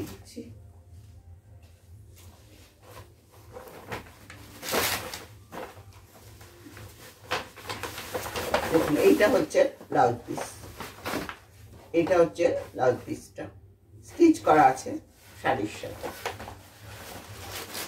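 Fabric rustles as it is unfolded and handled.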